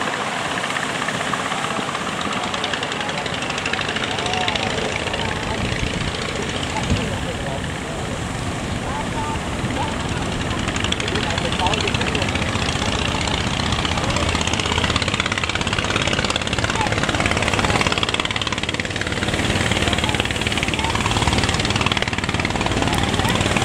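Waves crash and rush over the shore.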